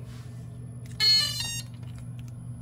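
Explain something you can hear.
A small electronic device beeps in short tones.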